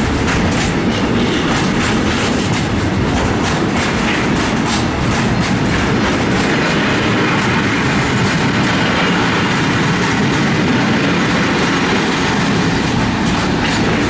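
Freight wagon wheels clatter over the rail joints.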